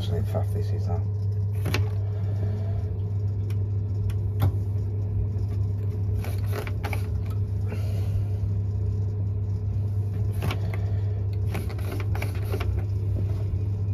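A plastic dial clicks as it is turned.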